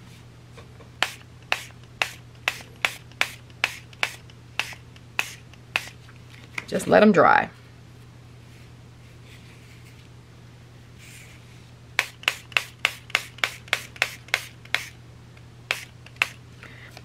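A spray bottle pumps in quick, short bursts.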